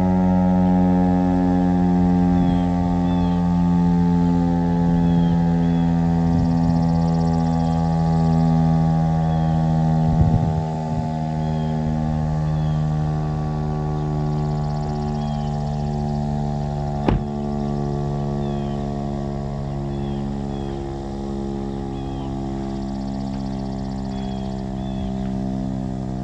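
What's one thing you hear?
A loud outdoor warning siren wails steadily, its pitch slowly falling.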